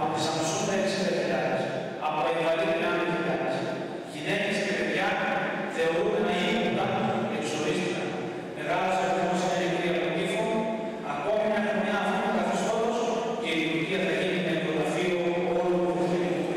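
A man reads aloud through a microphone.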